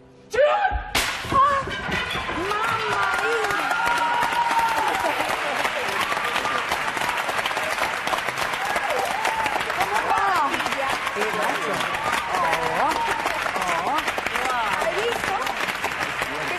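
An audience applauds and cheers steadily.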